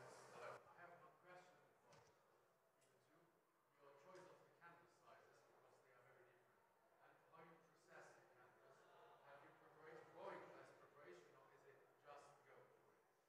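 A man speaks calmly at a distance in an echoing room.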